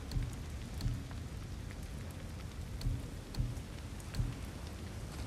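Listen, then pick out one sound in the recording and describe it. Soft menu clicks chime as options are selected.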